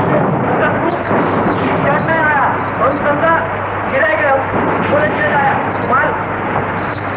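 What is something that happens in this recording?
A man speaks excitedly and loudly, close by.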